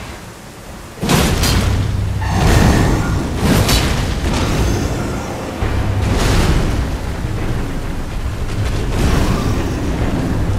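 Heavy blows crash loudly on stone.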